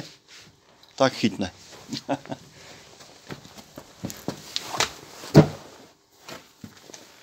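Flames crackle and flare up.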